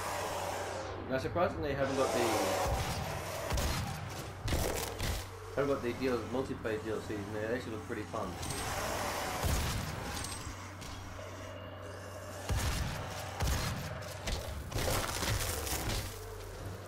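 Monsters growl and snarl.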